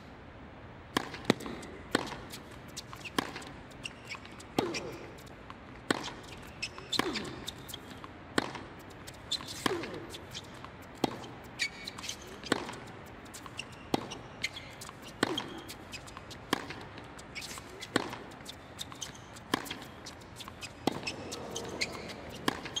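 Tennis rackets strike a ball back and forth in a steady rally.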